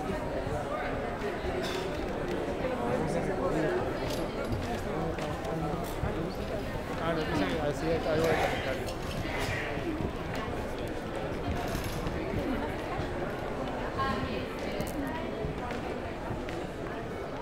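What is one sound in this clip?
A crowd of people chatters throughout in a large echoing hall.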